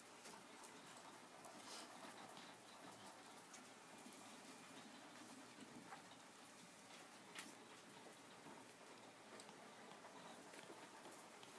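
A rat gnaws and nibbles at a treat close by.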